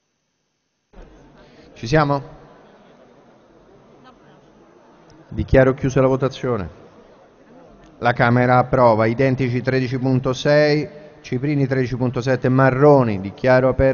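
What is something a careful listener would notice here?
A man speaks formally through a microphone in a large echoing hall.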